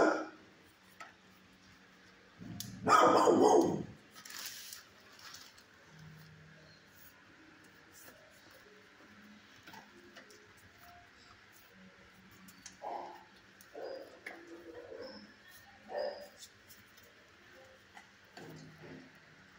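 A dog's claws tap on a hard floor.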